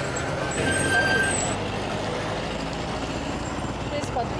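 Traffic passes by on a road outdoors.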